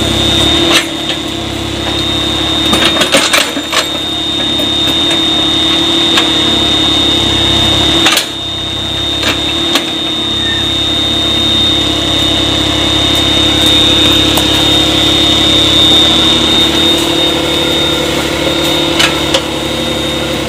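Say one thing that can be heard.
An excavator bucket scrapes and thuds into wet earth.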